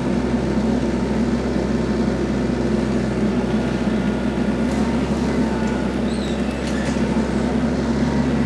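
A tree trunk creaks and drags along the ground.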